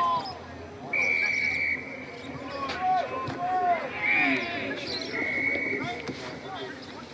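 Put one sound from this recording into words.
An umpire's whistle blows sharply.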